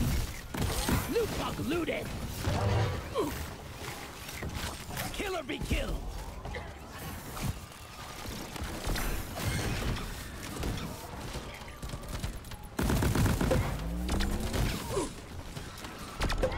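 Creatures screech and squeal.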